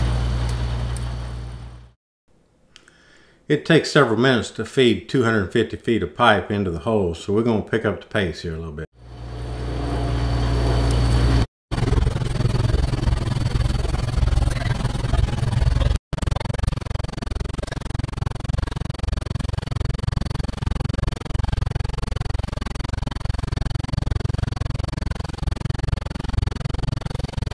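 A drilling rig's engine rumbles steadily outdoors.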